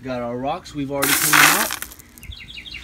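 Pebbles rattle and clatter as a hand stirs through them in a bucket.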